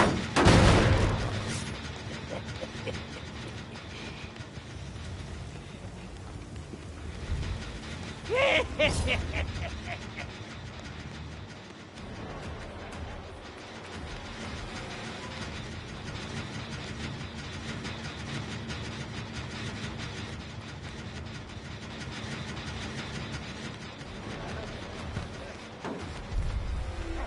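Footsteps patter steadily on a hard floor.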